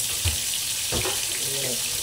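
A spoon stirs and scrapes inside a metal pot.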